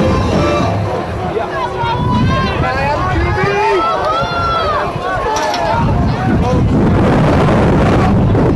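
A crowd of spectators shouts outdoors.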